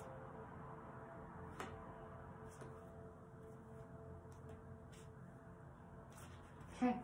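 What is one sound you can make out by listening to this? Playing cards shuffle softly and riffle between a woman's hands.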